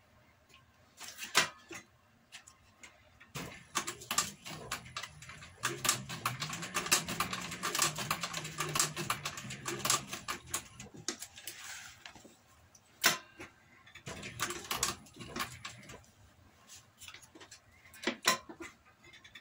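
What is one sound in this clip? Stiff leather creaks and rustles as it is handled.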